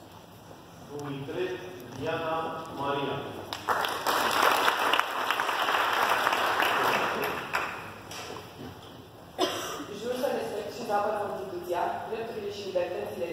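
A man speaks aloud to a gathering in an echoing hall.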